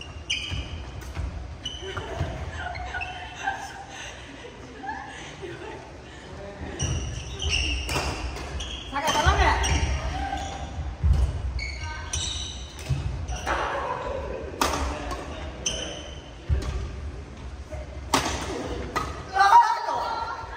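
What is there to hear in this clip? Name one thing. Badminton rackets smack shuttlecocks in a large echoing hall.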